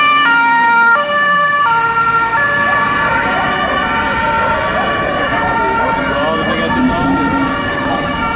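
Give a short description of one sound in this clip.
A police car siren wails in a two-tone pattern.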